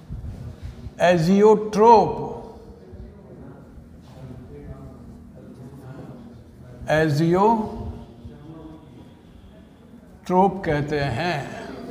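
An elderly man speaks loudly in short bursts.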